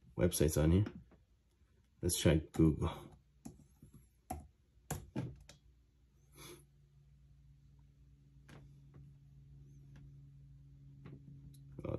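Fingers tap and click on a keyboard trackpad.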